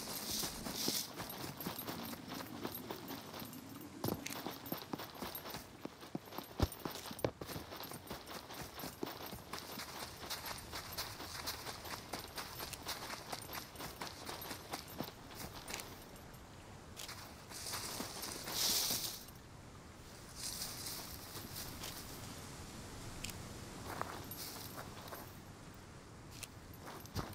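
Footsteps crunch over grass, rock and sand at a steady walking pace.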